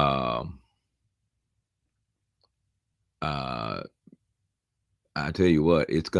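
A middle-aged man speaks calmly and slowly, heard through an online call with pauses between phrases.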